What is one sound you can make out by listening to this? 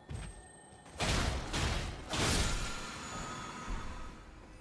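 A magic spell bursts with a bright, sparkling shimmer.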